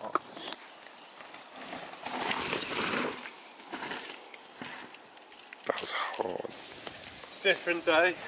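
Mountain bike tyres roll over a dirt trail.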